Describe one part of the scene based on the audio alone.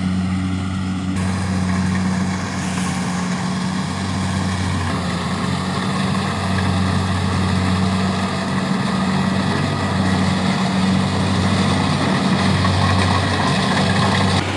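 A combine harvester engine drones steadily nearby.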